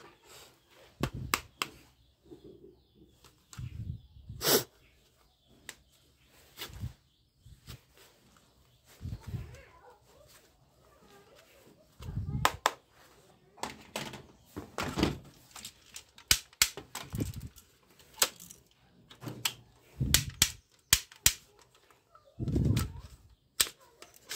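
Plastic toy guns click and rattle as hands handle them.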